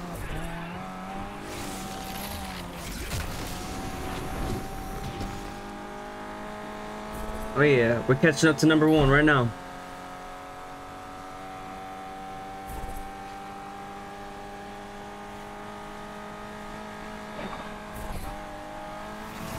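A car engine roars steadily and rises in pitch as it speeds up.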